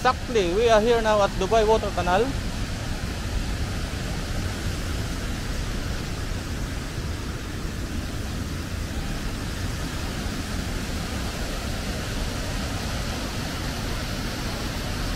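Water pours steadily from a height, splashing into a river below.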